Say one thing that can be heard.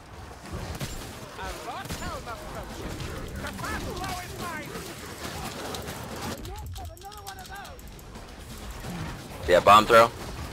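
Weapons clash and strike in a close fight.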